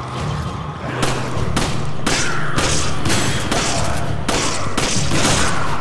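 A pistol fires several sharp shots in quick succession.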